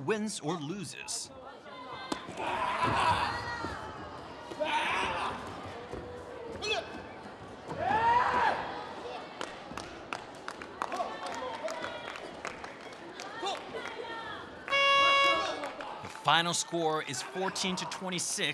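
Bare feet squeak and scuff on a rubber mat.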